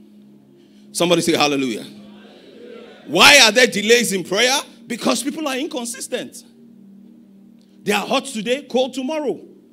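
A man preaches with animation into a microphone, heard over loudspeakers in a large hall.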